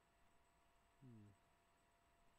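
A young man briefly makes a short low vocal sound close to a microphone.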